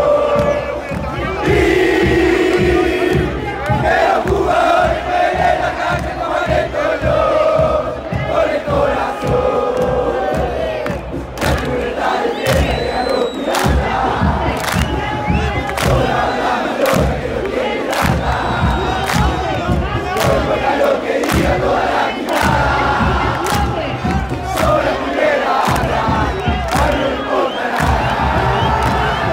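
A large crowd of fans sings and chants loudly in an open stadium.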